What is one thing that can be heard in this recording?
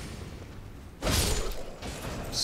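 A sword strikes an armoured enemy with a sharp clang.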